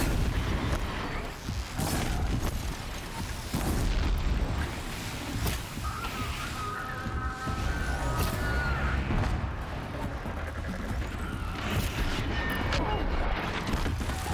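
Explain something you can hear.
Game sound effects of mechanical creatures screech and clatter.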